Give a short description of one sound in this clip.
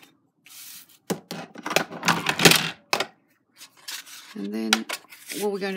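Stiff paper rustles and slides across a mat.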